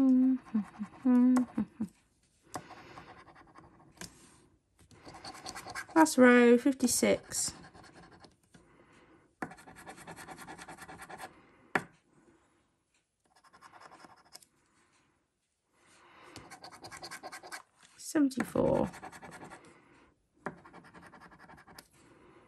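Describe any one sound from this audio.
A coin scratches across a scratch card in short rasping strokes.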